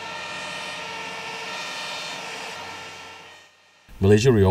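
A jet engine whines steadily as an airliner taxis.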